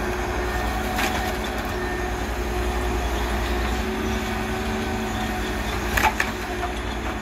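Logs knock and clunk against each other.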